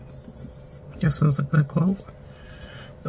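Fingers rub a sticker firmly onto paper.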